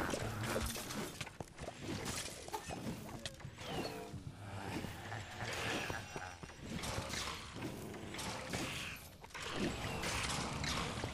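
Magic bolts fire with zapping whooshes.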